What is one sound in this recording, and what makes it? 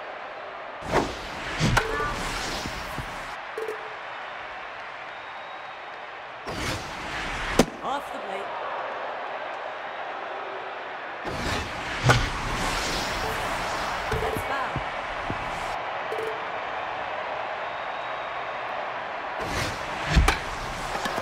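A bat cracks sharply against a ball several times.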